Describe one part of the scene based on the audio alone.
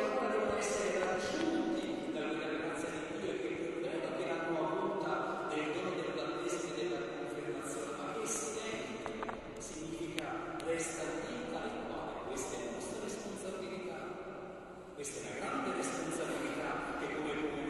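A small group of voices sings in a large echoing hall.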